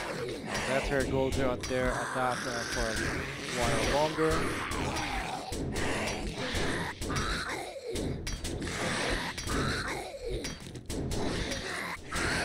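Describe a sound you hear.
A zombie snarls and groans behind a door.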